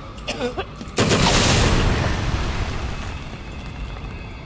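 A rocket explodes with a loud boom that rumbles away.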